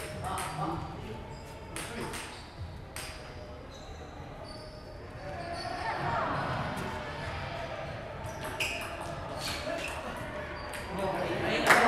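A table tennis ball clicks against paddles and the table in a large echoing hall.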